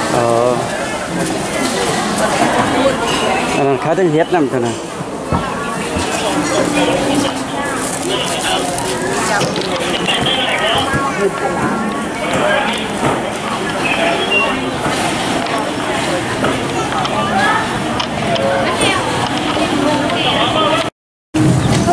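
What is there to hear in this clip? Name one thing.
A crowd of shoppers chatters in a large indoor hall.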